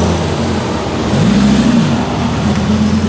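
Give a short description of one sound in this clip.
A car engine revs loudly and rises in pitch as it passes close by.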